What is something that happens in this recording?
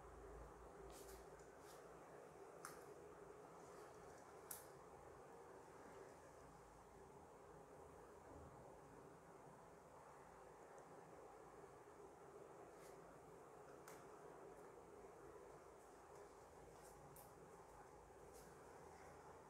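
Plastic clothes hangers click and scrape against a rail.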